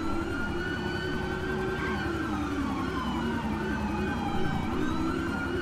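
A car engine roars steadily at speed.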